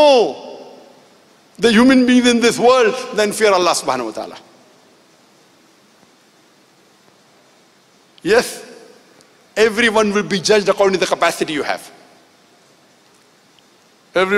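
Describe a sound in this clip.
A middle-aged man speaks forcefully into a microphone over a loudspeaker, in bursts with pauses.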